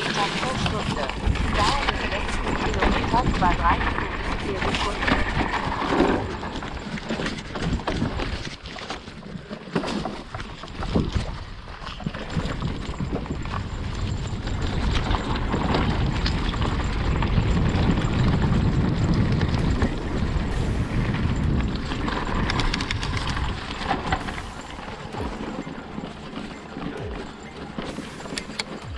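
A hardtail electric mountain bike rattles over roots and stones.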